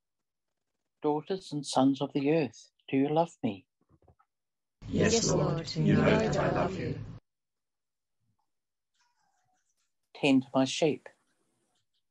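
An elderly man reads aloud over an online call.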